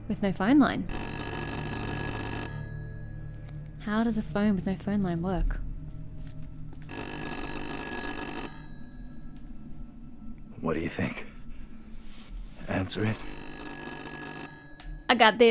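A telephone rings with a shrill, repeating bell.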